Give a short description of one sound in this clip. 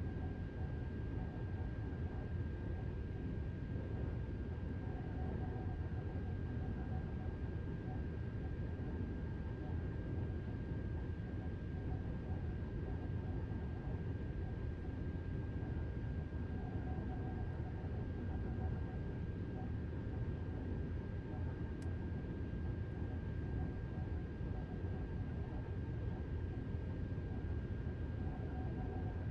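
An electric train hums and rumbles steadily along the rails.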